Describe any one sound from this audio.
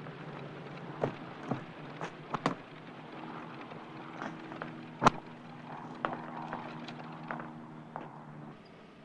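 Bags thump as they are loaded into a Jeep.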